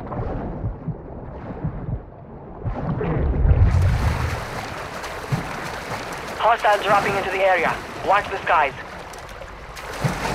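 Water splashes and sloshes as a swimmer strokes through it.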